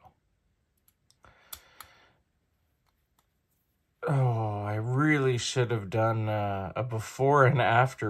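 A small screwdriver turns a screw with faint clicks.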